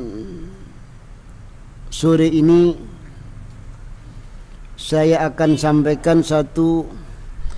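A middle-aged man speaks calmly into a nearby microphone, with pauses.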